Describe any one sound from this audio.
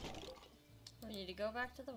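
A young woman speaks with animation into a nearby microphone.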